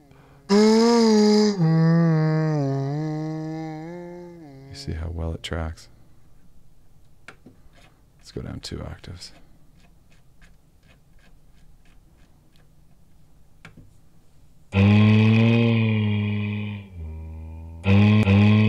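A synthesizer plays a buzzy, pitched tone that wavers and slides in pitch.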